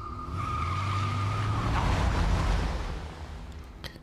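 A car engine rumbles nearby.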